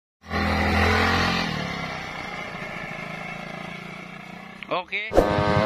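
A motor scooter engine revs up close and then fades as it rides away.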